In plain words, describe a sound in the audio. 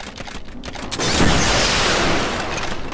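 A rocket launcher fires with a loud whoosh.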